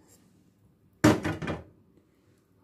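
A plastic cup knocks against the rim of a plastic jar.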